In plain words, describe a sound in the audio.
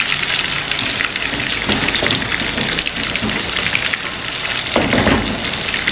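A metal pot lid clanks as it is lifted and set down.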